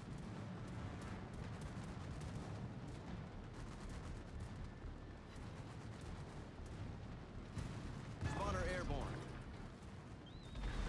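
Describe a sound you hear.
Naval guns fire in heavy, booming blasts.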